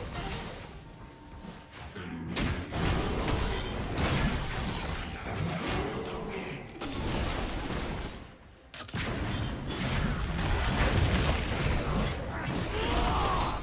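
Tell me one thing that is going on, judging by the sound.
Magic spells burst and whoosh amid a clash of fighting.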